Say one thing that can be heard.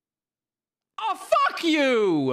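A young man exclaims loudly into a close microphone, his voice swooping up and down.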